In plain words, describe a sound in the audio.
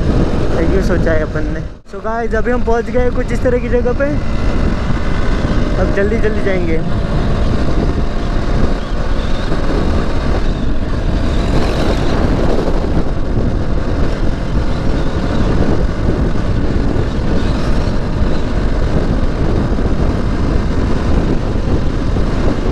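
A motorcycle engine roars steadily up close.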